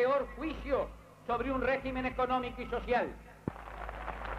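A man speaks forcefully into a microphone, heard through loudspeakers.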